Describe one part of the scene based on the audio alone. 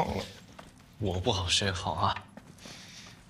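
A second young man answers quietly.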